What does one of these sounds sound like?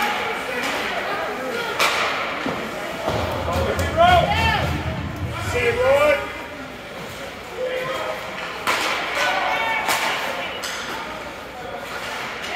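Skates scrape across the ice in an echoing rink.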